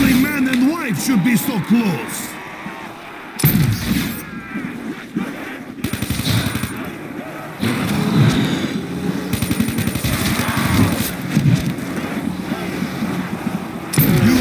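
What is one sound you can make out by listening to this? Zombies groan and snarl nearby.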